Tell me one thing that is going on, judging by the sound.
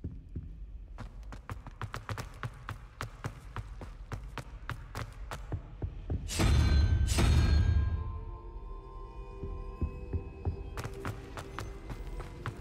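Footsteps tap quickly on a hard stone floor, echoing in a large hall.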